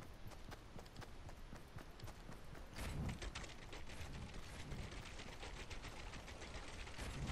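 Wooden walls snap into place with quick hollow knocks.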